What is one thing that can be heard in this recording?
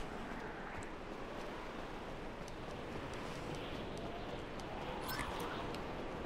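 Footsteps run quickly across hard ground.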